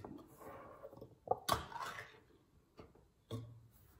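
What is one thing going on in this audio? A ring-pull can lid clicks and tears open.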